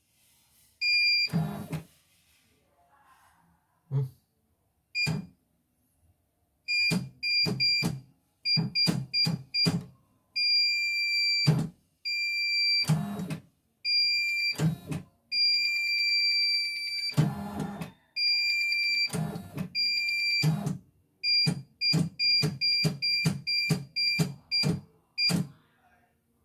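An electronic machine beeps sharply each time a button is pressed.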